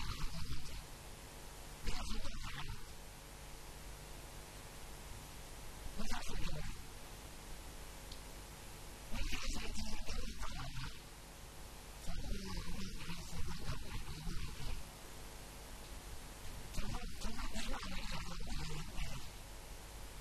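An elderly man speaks with animation through a microphone, in bursts with pauses.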